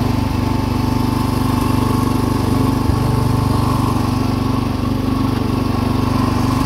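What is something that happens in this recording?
A small tractor engine chugs steadily close by.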